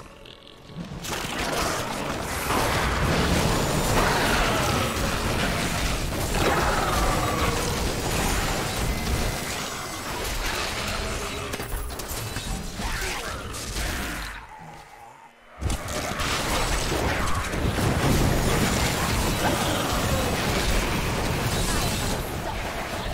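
Fiery beams crackle and roar as monsters are blasted.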